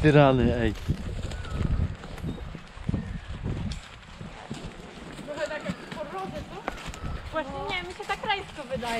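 A horse's hooves thud and rustle through dry leaves at a walk.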